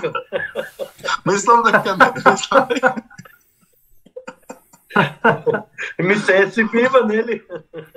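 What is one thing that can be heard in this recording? Men laugh over an online call.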